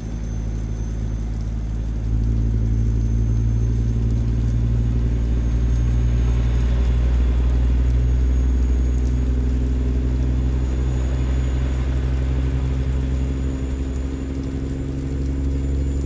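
A truck engine drones steadily with a deep rumble.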